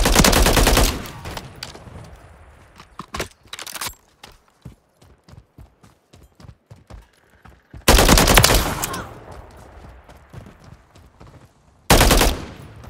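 Footsteps crunch quickly over dirt and grass.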